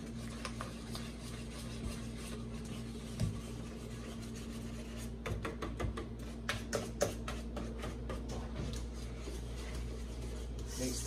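A whisk clinks and scrapes against a metal bowl while beating a thick batter.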